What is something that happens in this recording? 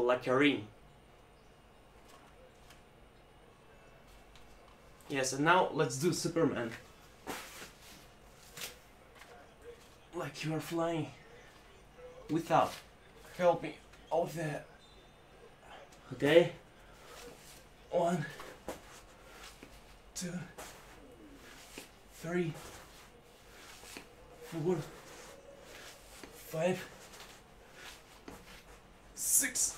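A young man speaks in short bursts close by, pausing between them.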